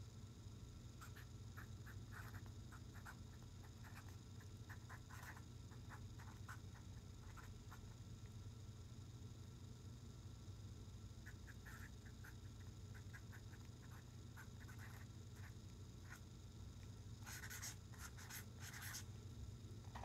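A marker pen squeaks and scratches on paper in short strokes.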